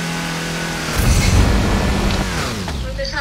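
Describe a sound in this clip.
A game car crashes with a loud bang.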